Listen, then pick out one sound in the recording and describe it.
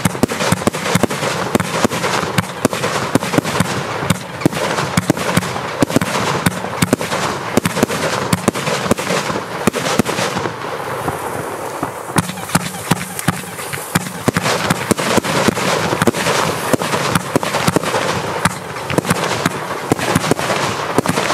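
Fireworks bang and crackle loudly outdoors.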